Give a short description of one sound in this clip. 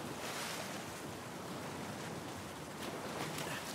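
Water swirls and laps as a swimmer moves through it.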